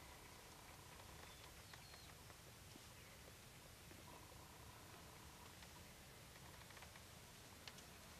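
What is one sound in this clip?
An elderly man whispers quietly close by.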